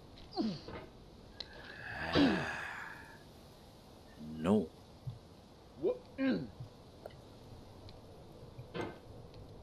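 A young man groans and exclaims in short bursts close to a microphone.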